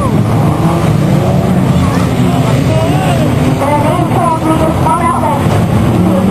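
Car engines roar and rev loudly outdoors.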